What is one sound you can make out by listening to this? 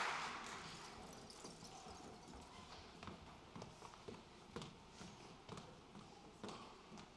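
Footsteps tap on a wooden stage.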